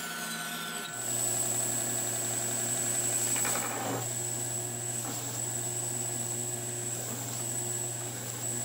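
A belt sander whirs steadily.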